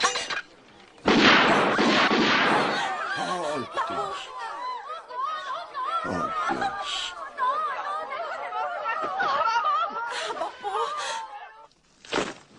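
A crowd of men and women shout and wail in distress.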